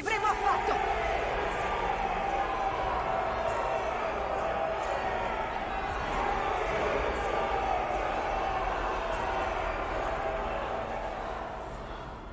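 A large crowd chants loudly in unison.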